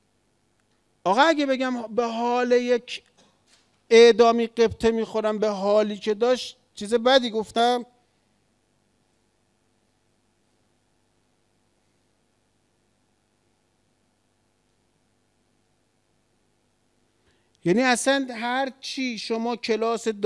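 A middle-aged man speaks with animation into a microphone, in bursts with long pauses.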